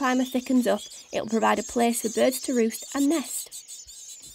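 Nestling birds cheep and beg shrilly up close.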